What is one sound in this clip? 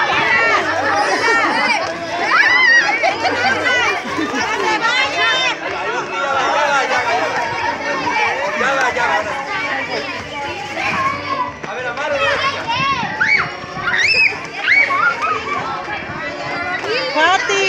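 Children shout and cheer excitedly close by outdoors.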